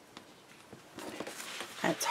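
Paper rustles under a pressing hand.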